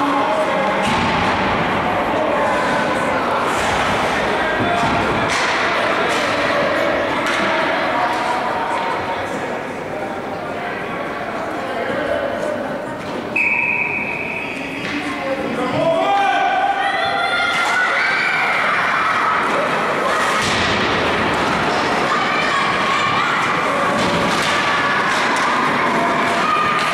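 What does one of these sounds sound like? Young men shout and call out across an echoing ice rink.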